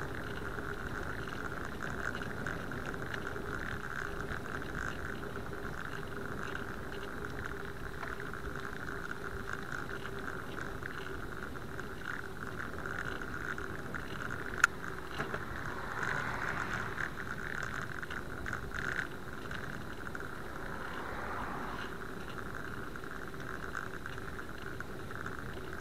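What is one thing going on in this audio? Wind rumbles steadily across a moving bicycle outdoors.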